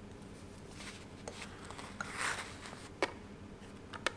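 A plastic case clicks and taps on a soft surface.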